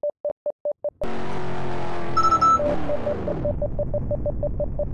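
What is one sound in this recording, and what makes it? A car engine roars and then winds down.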